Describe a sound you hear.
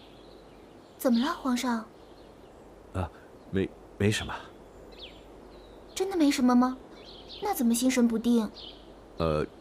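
A man speaks calmly and questioningly, close by.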